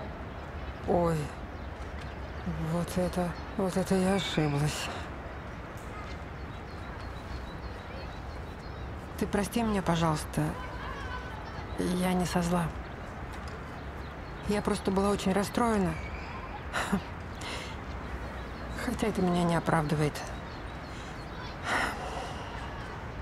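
An elderly woman talks calmly and warmly nearby.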